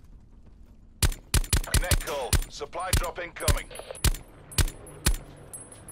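A rifle fires single shots at a steady pace.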